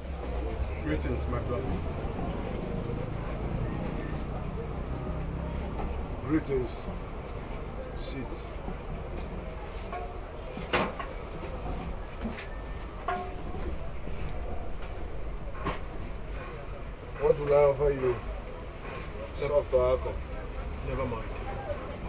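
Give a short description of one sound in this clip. Another man answers.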